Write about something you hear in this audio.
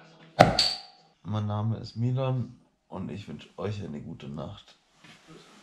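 A young man talks casually up close.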